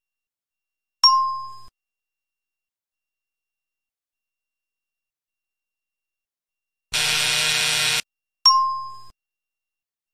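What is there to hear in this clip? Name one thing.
A bright electronic chime rings out and fades.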